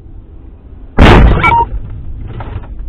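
A car horn honks loudly.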